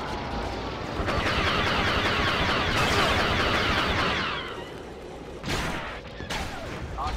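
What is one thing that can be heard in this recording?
Armoured boots thud on metal as a soldier runs.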